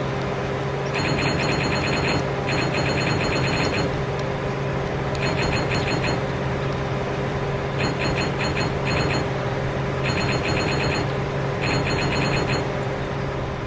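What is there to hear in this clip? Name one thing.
Coins chime with quick bright pings.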